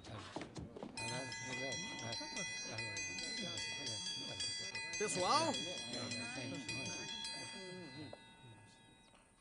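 A triangle dinner bell rings with a bright, lingering clang.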